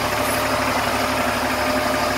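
A large diesel truck engine idles with a steady low rumble.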